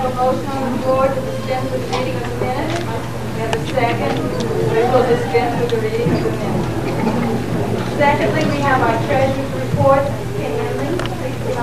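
A woman speaks steadily into a microphone in an echoing hall.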